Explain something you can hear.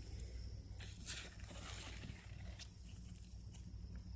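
Leaves rustle as a hand grabs a sunflower head.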